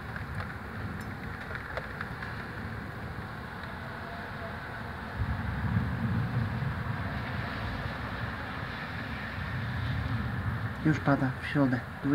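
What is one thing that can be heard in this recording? Wind gusts steadily outdoors.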